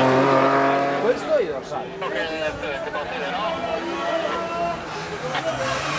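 A rally car engine revs hard as it climbs toward the listener.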